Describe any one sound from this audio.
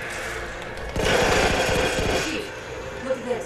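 An explosion booms and crackles.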